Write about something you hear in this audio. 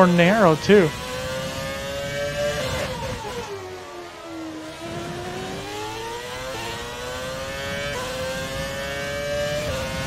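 A racing car engine whines loudly, dropping in pitch as the car slows into a corner and rising again as it speeds up.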